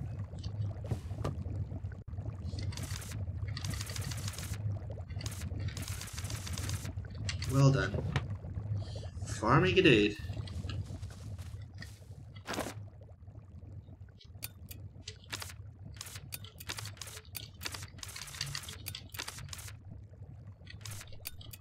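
Soft game menu clicks tick as selections change.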